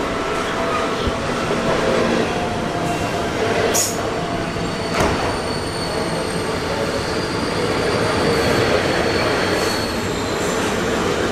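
An electric train rumbles past close by with a steady roar.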